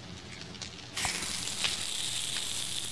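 A forge fire roars steadily.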